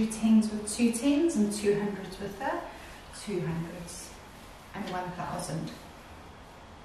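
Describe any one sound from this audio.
A young woman speaks calmly and clearly nearby.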